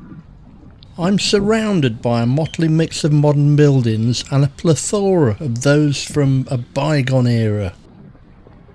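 An older man talks calmly, close to the microphone.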